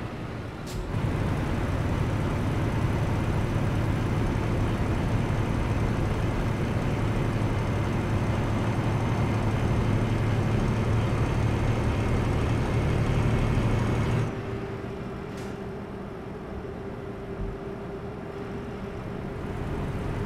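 A heavy diesel truck engine drones from inside the cab while cruising on a highway.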